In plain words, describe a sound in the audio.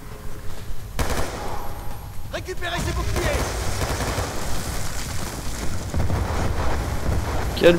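An automatic rifle fires rapid bursts of gunshots.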